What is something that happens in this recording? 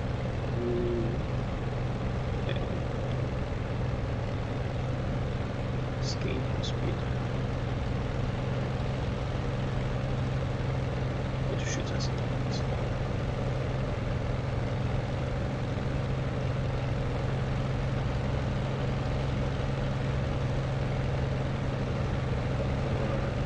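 An aircraft engine drones steadily and loudly.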